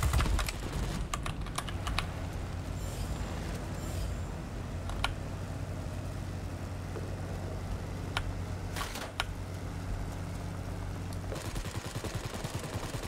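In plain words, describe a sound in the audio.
A biplane's piston engine drones in flight.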